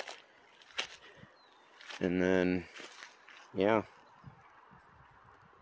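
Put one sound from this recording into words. Footsteps crunch on dry dirt and twigs.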